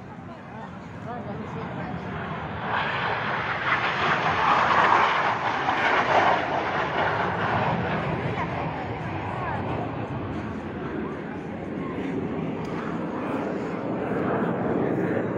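A jet roars loudly overhead, swelling and then slowly fading.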